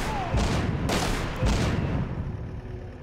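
Gunfire rattles in a fast burst.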